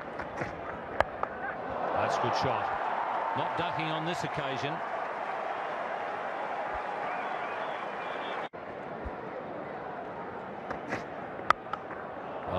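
A cricket bat sharply cracks against a ball.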